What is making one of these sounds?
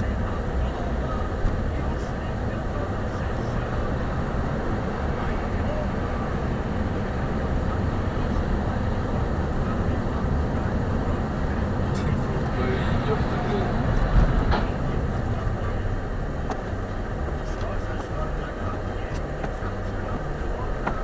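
Tyres hiss on a wet road.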